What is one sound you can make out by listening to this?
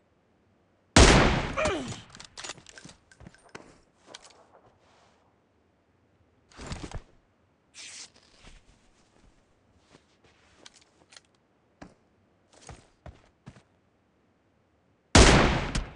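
A rifle fires loud single shots that echo away.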